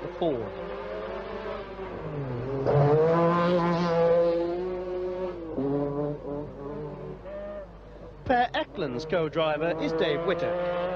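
A rally car engine roars loudly, revving up and down as the car speeds past.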